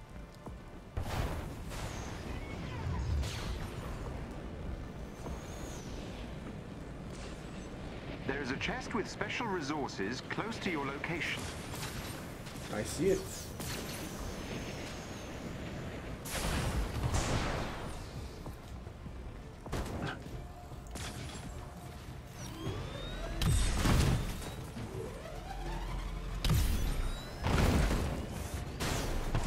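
Jet thrusters roar steadily.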